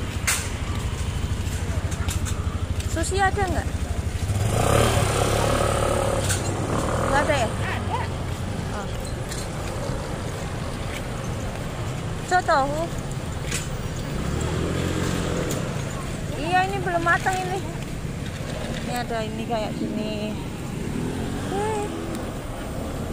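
A scooter engine hums steadily while riding along a street.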